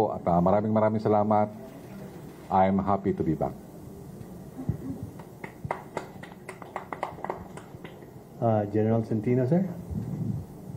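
A middle-aged man speaks calmly into a microphone, in pauses.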